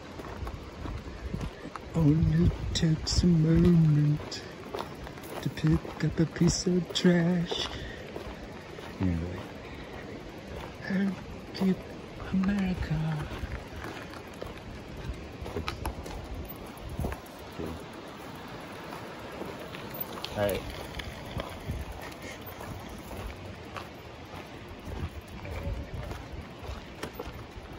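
A bicycle frame rattles over bumps.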